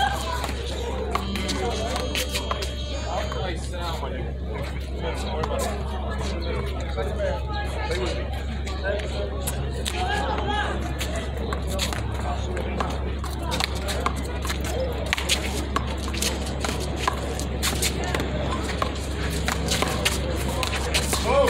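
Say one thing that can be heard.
A rubber ball smacks sharply against a wall and hands, again and again.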